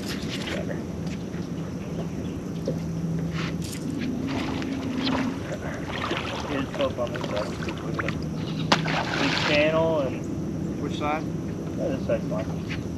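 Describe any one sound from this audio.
A boat's electric motor hums steadily.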